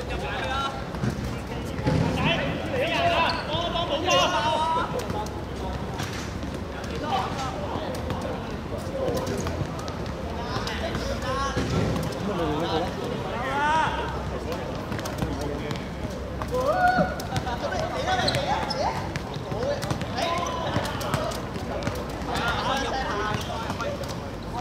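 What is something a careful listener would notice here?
Young men chat with one another close by, outdoors.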